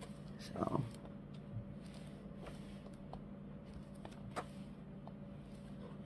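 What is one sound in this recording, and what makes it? Paper pages turn with a soft rustle and flap.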